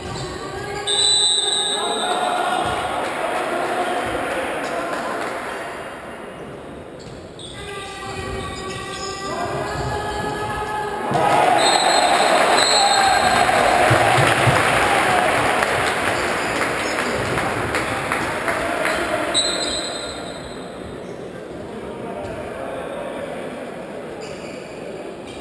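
A crowd of fans chants loudly in a large echoing hall.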